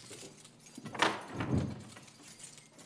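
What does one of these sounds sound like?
A heavy metal cell door swings and bangs shut.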